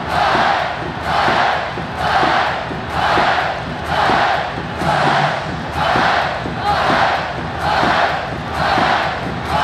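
A huge crowd chants in a steady rhythm, echoing widely.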